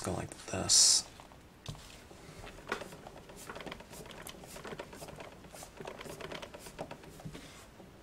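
A wooden stamp rubs and scrapes softly on paper.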